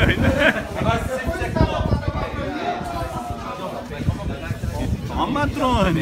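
Several men talk with animation close by, outdoors.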